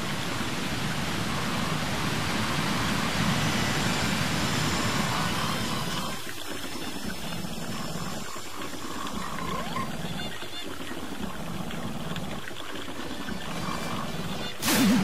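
Game music plays steadily throughout.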